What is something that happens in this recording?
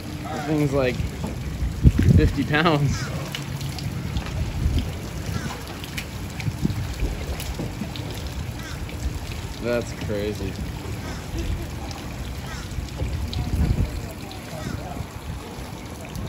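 Water laps gently below.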